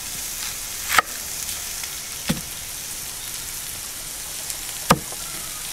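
A knife chops through an onion onto a wooden board.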